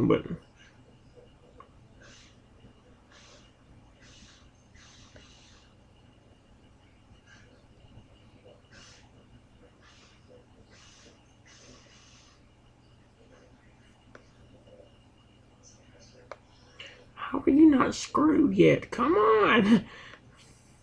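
A finger taps lightly on a touchscreen.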